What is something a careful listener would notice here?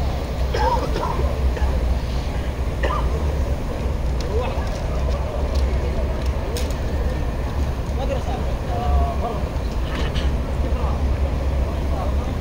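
A crowd of men and women murmur and chatter in a wide open space.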